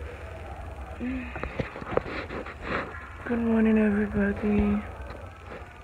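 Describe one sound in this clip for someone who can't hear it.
A young woman speaks close to a phone microphone, groaning and sighing sleepily.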